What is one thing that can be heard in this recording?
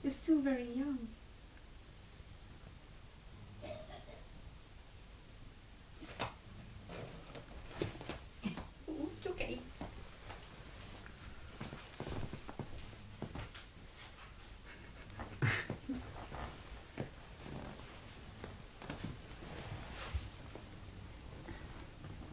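A cat plays, scuffling and rustling on a carpet.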